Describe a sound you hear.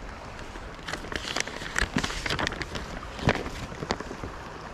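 A paper map rustles and crinkles close by.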